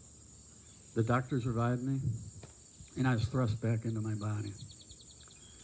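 An elderly man speaks calmly through a headset microphone, in short phrases.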